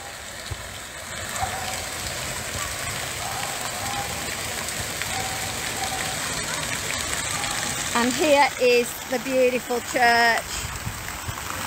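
A fountain splashes steadily outdoors.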